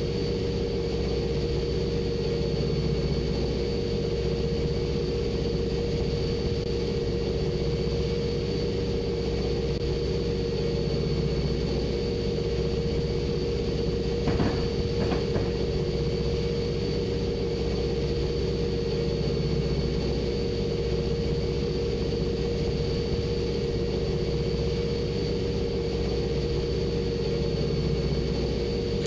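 Train wheels rumble and clack over the rails.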